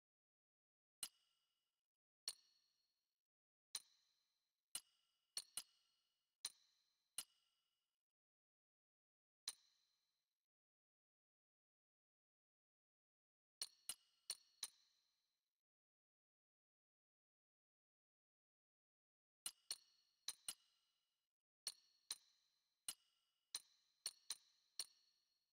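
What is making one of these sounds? Short, bright interface clicks sound one after another as menu items are picked.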